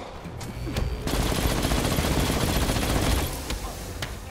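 An energy beam roars and crackles.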